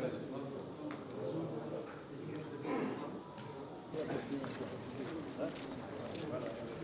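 Several men chatter in a crowd nearby.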